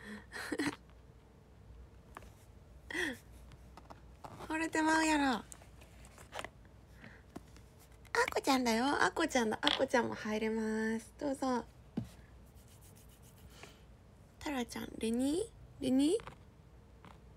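A young woman speaks brightly and playfully close to a microphone.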